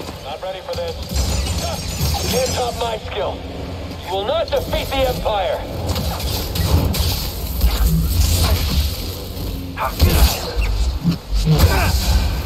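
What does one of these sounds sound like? Laser swords hum and clash.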